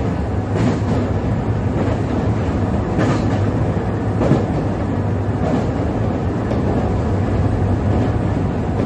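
An electric train's motor hums and rumbles steadily as it runs along the track.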